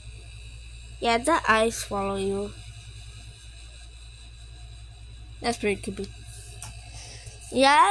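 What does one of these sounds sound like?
A plush toy gives out short, high electronic chirps when squeezed.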